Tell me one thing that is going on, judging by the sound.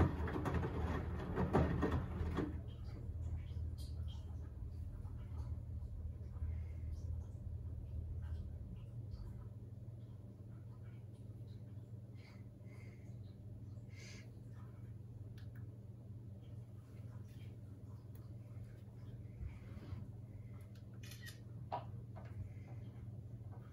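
Laundry tumbles with soft knocks inside a washing machine.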